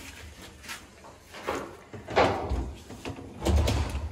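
A sliding panel rolls along a metal track.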